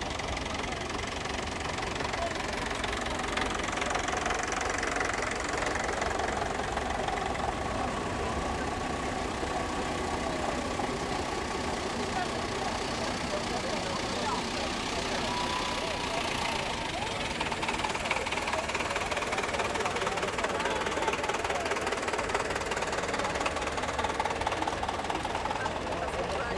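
Old tractor engines chug and rumble as they drive past close by.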